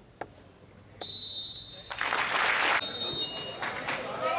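A referee's whistle blows sharply for the kickoff.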